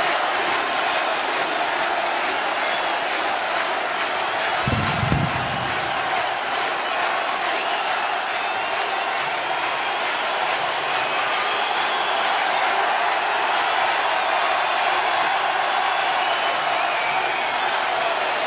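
A large crowd cheers and applauds loudly in a vast echoing arena.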